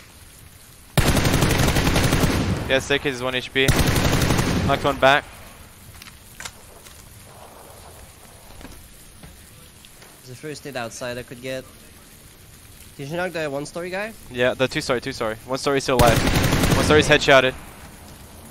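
An assault rifle fires rapid bursts.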